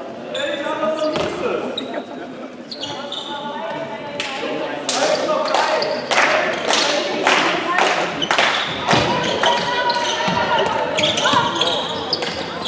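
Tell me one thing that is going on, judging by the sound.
Spectators nearby murmur and call out.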